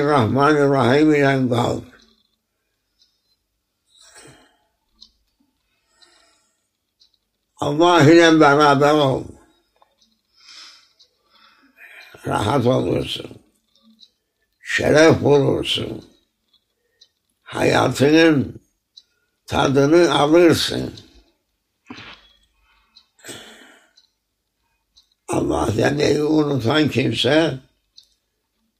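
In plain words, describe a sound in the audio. An elderly man speaks slowly and calmly, close by, in short phrases with pauses.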